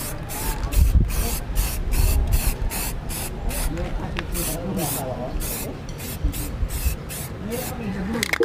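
A spray can hisses in short, quick bursts.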